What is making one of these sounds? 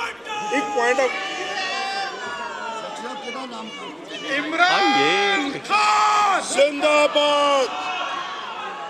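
A crowd of men chants and shouts loudly in a large echoing hall.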